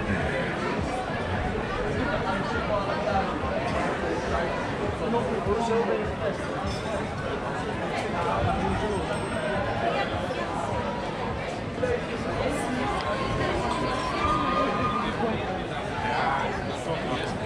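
A crowd of people chatters steadily outdoors.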